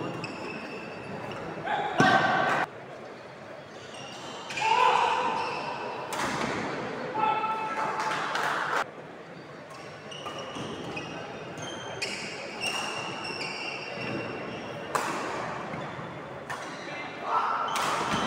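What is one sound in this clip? Voices of a crowd murmur and call out in a large echoing hall.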